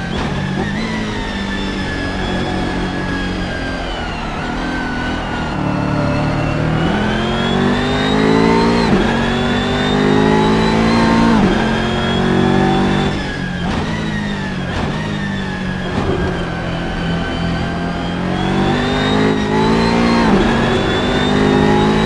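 A racing car engine roars loudly, revving up and down through the gears.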